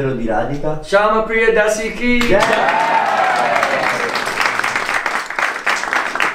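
A small group sings along together.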